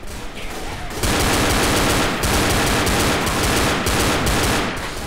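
Pistol shots fire rapidly and loudly.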